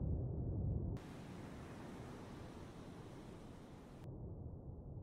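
Waves wash and splash against a ship's hull.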